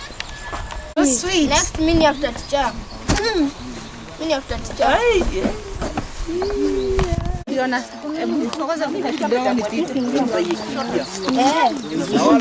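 Children talk and shout excitedly nearby.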